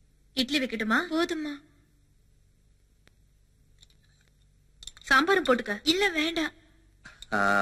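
A woman speaks firmly nearby.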